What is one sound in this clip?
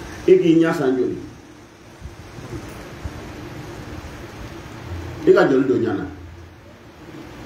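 A middle-aged man speaks slowly and forcefully into a microphone, with pauses between phrases.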